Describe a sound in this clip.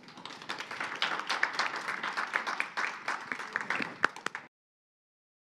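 An audience claps loudly in a large room.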